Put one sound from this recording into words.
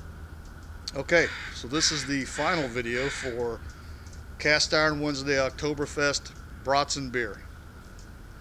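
An older man speaks calmly close by.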